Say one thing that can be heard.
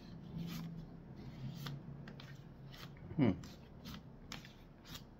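Paper cards rustle and slide against each other in hands.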